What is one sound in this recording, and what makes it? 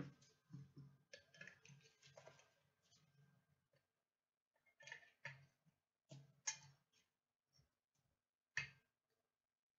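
Plastic card cases clack and rustle in hands.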